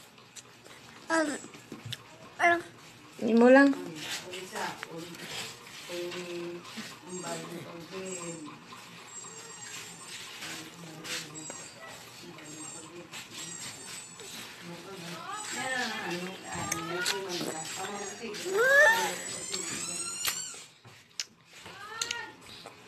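A toddler babbles and hums softly close by.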